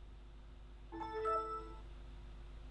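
A computer plays a short startup chime.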